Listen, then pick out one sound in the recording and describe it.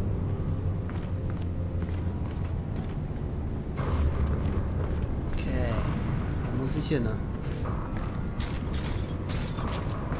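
Soft footsteps shuffle on a hard floor.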